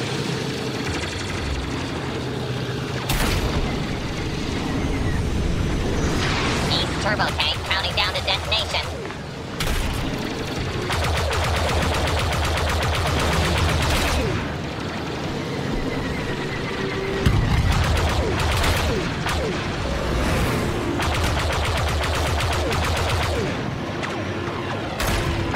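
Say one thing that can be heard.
Starfighter engines roar steadily.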